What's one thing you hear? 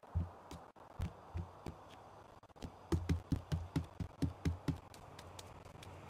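Footsteps climb wooden stairs.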